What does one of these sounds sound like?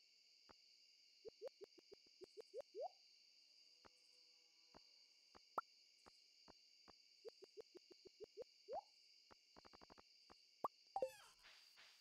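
Short electronic blips and pops sound in quick runs, as in a video game menu.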